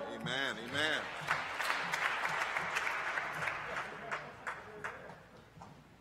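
A crowd sings together in a large echoing hall.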